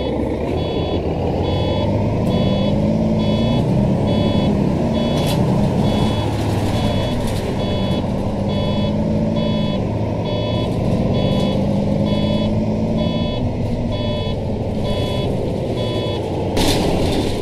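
A turn indicator ticks in a quick, even rhythm.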